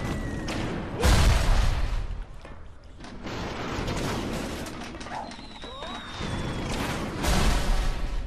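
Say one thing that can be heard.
An object crackles with electric sparks.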